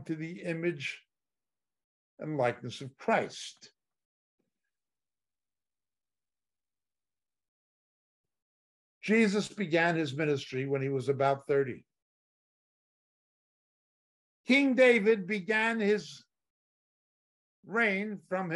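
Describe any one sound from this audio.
An older man talks calmly into a close microphone, with pauses.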